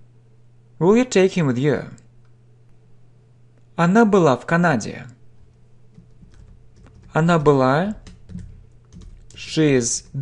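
A man speaks clearly in short phrases close to a microphone, with pauses between them.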